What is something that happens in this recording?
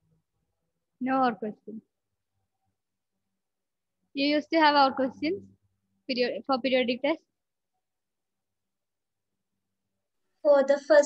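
A young woman speaks clearly into a headset microphone, in short bursts with pauses.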